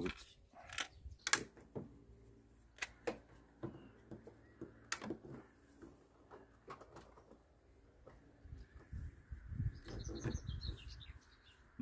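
Plastic parts click and snap on a car headlight.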